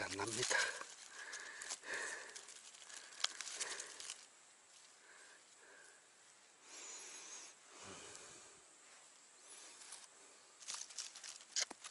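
Dry leaves rustle and crackle as a gloved hand digs through them.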